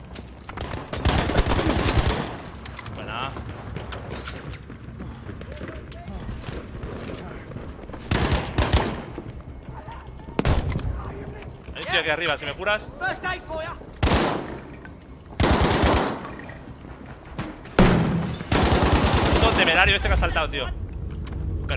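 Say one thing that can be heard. Rapid gunfire rattles in loud bursts.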